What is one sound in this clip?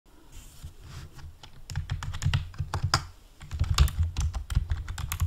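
Keys clatter quickly on a computer keyboard.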